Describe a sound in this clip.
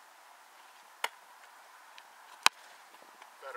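A foot kicks a football with a sharp thump.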